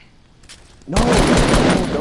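Gunshots ring out from a rifle.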